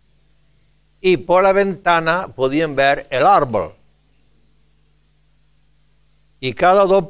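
An elderly man speaks with emphasis into a microphone, in bursts with pauses.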